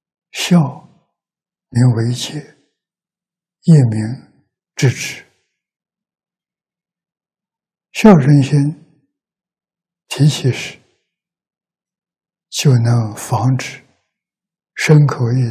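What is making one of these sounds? An elderly man speaks slowly and calmly into a close microphone, in short phrases with pauses.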